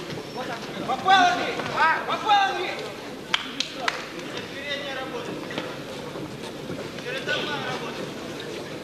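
Spectators shout and cheer.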